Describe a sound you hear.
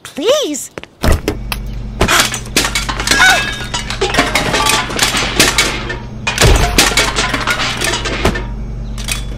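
Food tumbles out of a fridge and clatters onto a girl.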